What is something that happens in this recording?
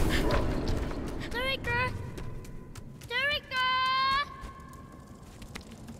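A boy runs with quick footsteps on stone.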